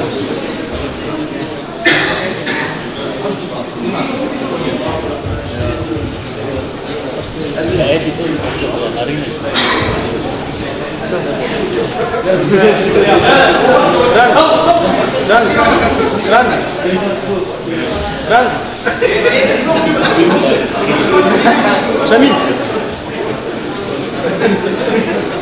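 A crowd of spectators shouts and cheers nearby, growing louder partway through.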